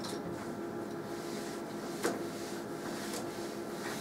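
A cloth wipes across a chalkboard.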